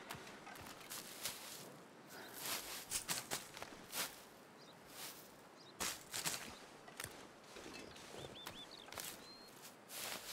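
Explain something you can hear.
Dry reeds rustle and snap as they are pulled.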